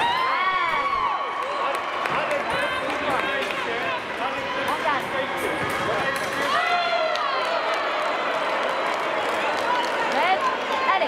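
Shoes squeak sharply on a hard floor as fencers move back and forth.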